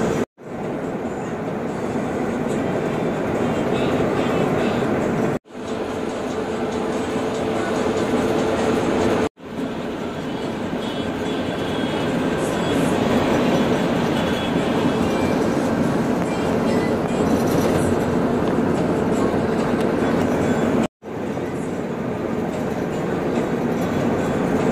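A bus engine drones steadily while driving.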